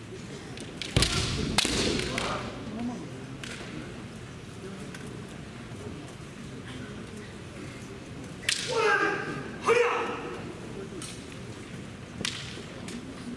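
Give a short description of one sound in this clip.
Bamboo swords clack sharply against each other.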